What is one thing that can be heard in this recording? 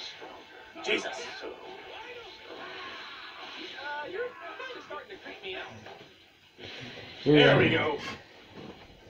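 Punches and energy blasts crash from a television's speakers.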